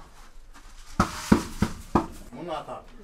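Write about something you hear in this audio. A hollow gourd knocks against metal a few times.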